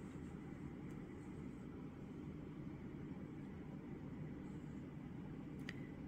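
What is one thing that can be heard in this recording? Water bubbles and simmers in a pot with a low, steady rumble.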